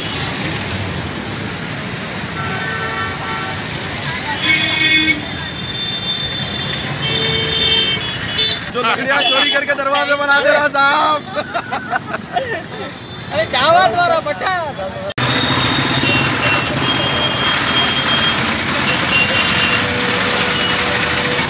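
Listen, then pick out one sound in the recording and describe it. Traffic rumbles past on a busy road outdoors.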